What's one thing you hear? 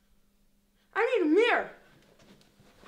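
A boy howls loudly.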